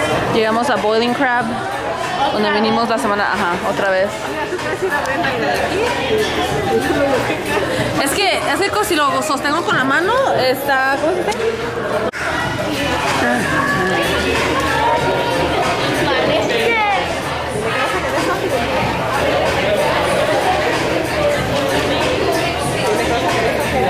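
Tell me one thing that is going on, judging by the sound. A crowd of people chatters throughout a busy, noisy room.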